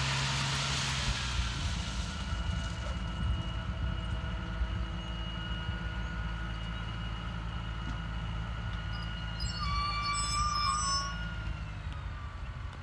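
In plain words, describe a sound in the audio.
Steel wheels clatter and squeal on rails.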